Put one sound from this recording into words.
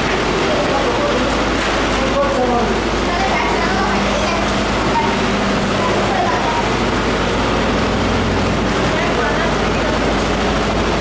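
Boys talk nearby.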